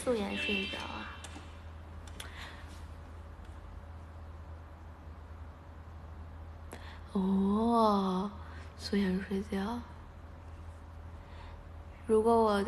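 A young woman speaks playfully close to the microphone, in short bursts.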